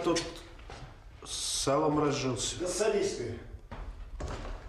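A middle-aged man speaks firmly and close by.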